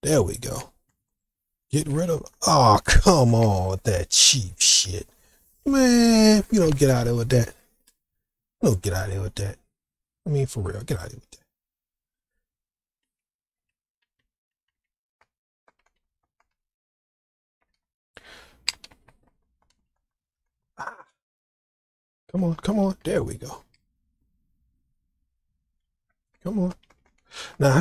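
A man speaks with animation close to a microphone, in bursts with pauses.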